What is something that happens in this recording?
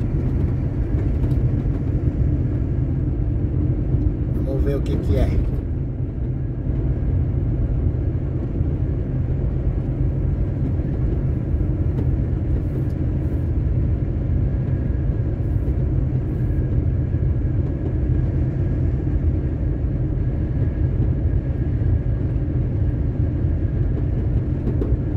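Wind rumbles against a moving vehicle.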